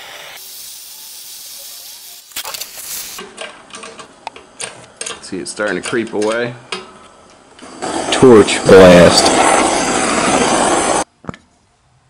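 A hand-held gas torch hisses as it burns.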